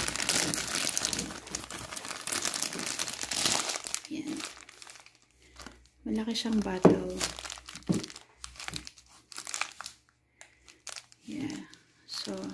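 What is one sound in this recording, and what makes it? A plastic bag crinkles and rustles as a hand handles it.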